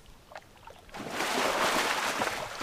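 A fishing float splashes in water.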